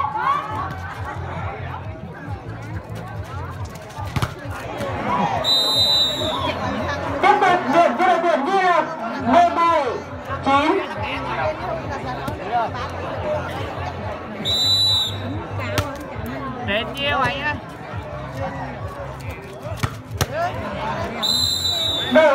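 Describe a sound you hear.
A large crowd of spectators chatters and cheers outdoors.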